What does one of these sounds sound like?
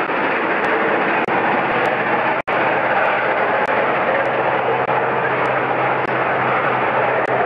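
A steam locomotive chuffs hard in rapid, steady beats as it pulls away.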